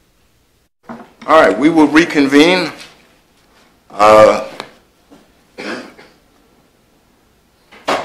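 A man speaks calmly through a microphone, in short phrases.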